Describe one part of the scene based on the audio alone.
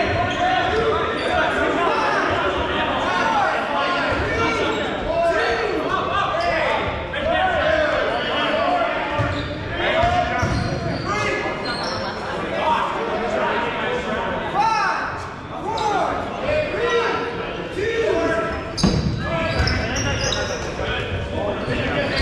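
Many young men and women shout and call out across a large echoing gym.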